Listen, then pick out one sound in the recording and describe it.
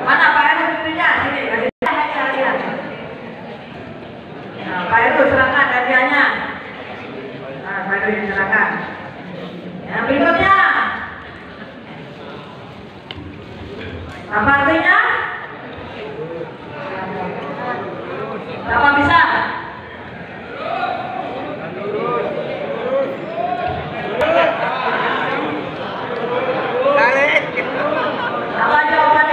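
A woman speaks through a microphone and loudspeakers in a large echoing hall.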